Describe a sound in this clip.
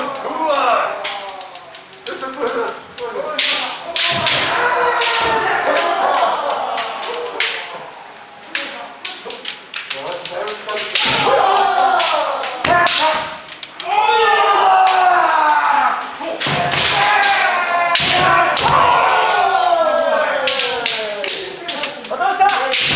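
Several people shout loud, drawn-out battle cries in an echoing hall.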